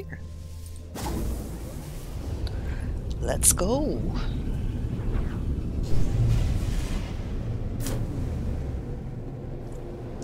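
A spaceship's engine roars and rushes through a warp jump.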